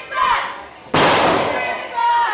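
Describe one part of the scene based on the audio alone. A wrestler is body-slammed onto a ring mat with a loud thud.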